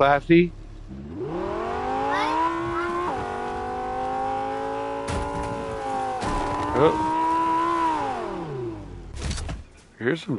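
A car engine hums and revs up and down steadily.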